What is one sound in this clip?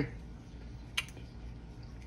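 A fork clinks against a ceramic plate.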